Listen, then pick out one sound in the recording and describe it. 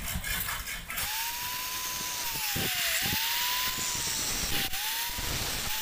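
A grinding disc scrapes against metal.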